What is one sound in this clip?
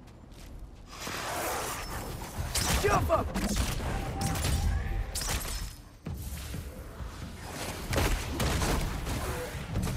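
A wooden staff swings and strikes in a fight.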